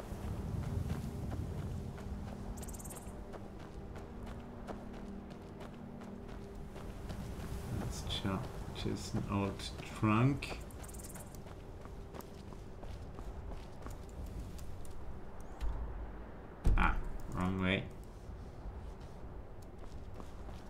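Footsteps crunch over grass and stones.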